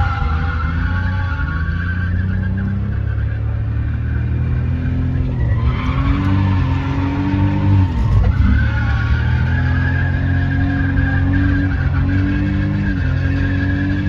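Tyres squeal on wet pavement.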